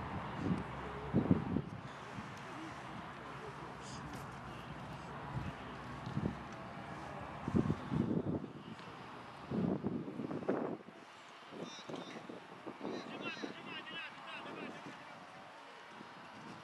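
Young men call out to each other across an open field, far off.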